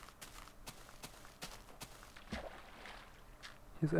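Water splashes as a figure wades through it.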